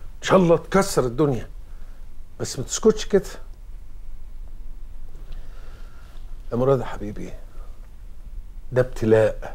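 An elderly man speaks slowly and earnestly, close by.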